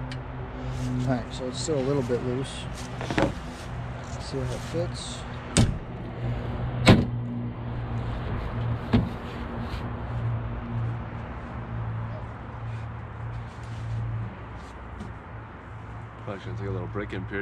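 A man talks casually nearby.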